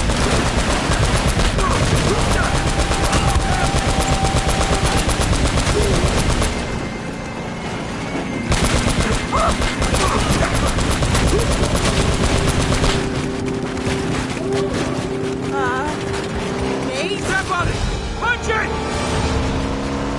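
A jeep engine roars steadily.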